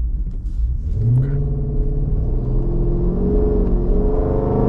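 A car engine revs up and roars louder as the car accelerates.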